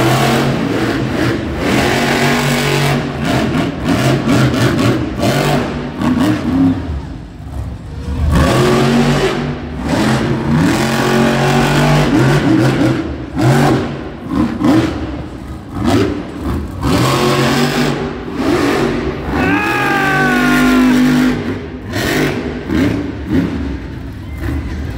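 A monster truck engine roars and revs in a large echoing arena.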